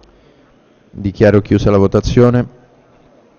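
A man speaks briefly into a microphone in a large echoing hall.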